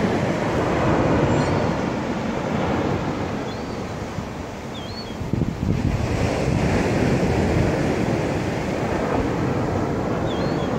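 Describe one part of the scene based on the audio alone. Waves wash gently onto the shore.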